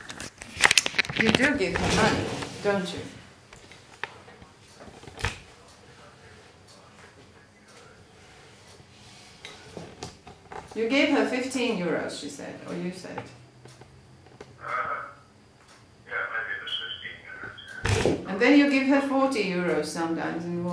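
A middle-aged woman speaks on a phone close by, in a calm voice.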